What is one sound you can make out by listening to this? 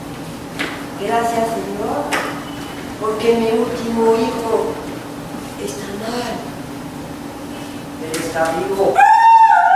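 Actors speak on a stage, heard from the back of a large hall.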